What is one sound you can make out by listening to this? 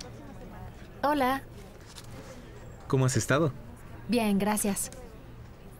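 A young woman speaks calmly and nearby.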